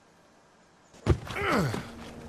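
A body thuds heavily onto the ground.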